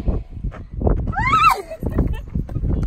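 A young woman squeals excitedly.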